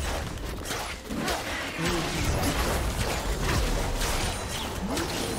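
Game spells crash and whoosh amid rapid fighting sounds.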